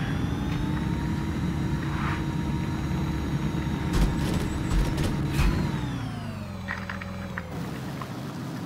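A small engine hums steadily, then drops in pitch and fades.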